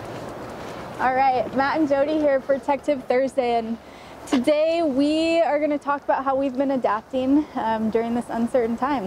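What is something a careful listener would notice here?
A woman talks cheerfully close by.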